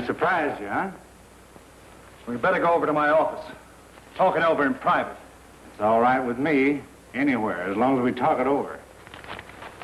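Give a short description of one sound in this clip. Two men talk calmly.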